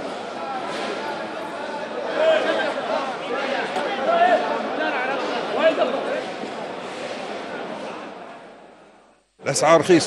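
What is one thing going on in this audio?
A crowd of people chatters in a busy, echoing hall.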